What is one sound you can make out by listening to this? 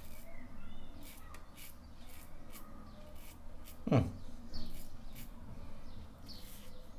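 A razor scrapes through stubble in short strokes.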